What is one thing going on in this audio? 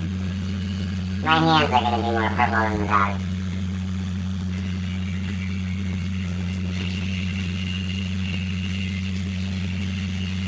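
Water sprays from a hose onto a dog in a tub.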